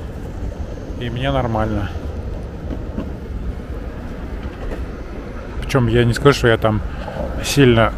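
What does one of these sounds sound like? A man speaks close to the microphone.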